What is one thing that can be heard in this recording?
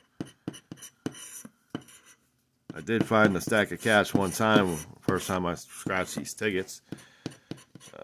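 A plastic scraper scratches rapidly across a scratch card.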